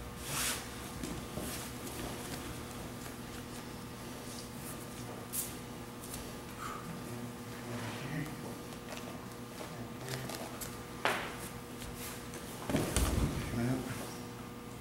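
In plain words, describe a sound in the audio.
Stiff fabric rustles as two people grapple.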